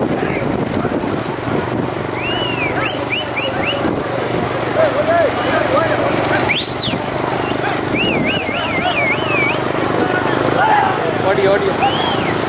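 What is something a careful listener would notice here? Wheels of racing carts rumble over asphalt.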